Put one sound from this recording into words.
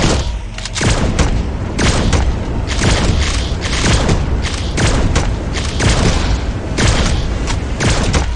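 Fiery explosions boom and roar.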